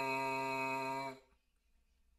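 A man buzzes a loud, steady note on a brass mouthpiece, then stops abruptly.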